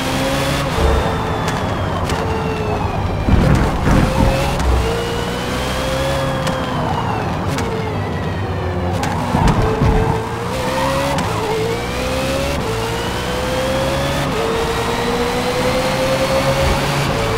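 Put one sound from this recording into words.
A race car engine roars, rising and falling in pitch as it shifts gears.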